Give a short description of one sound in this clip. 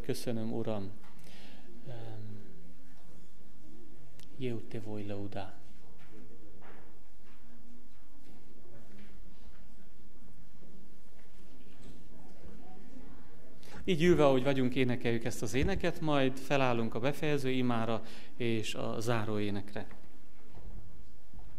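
A man speaks calmly into a microphone in an echoing hall, sometimes pausing.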